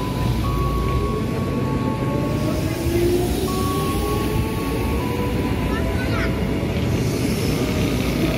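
A train rumbles and rattles past close by.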